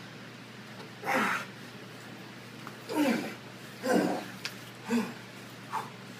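A man grunts and exhales hard.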